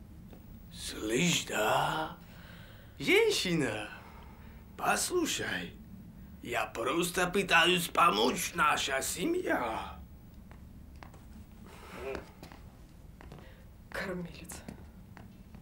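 A young man speaks close by, pleading with animation.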